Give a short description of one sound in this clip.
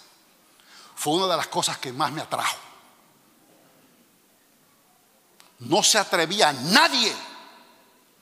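A man speaks with animation into a microphone, heard through loudspeakers in a large echoing hall.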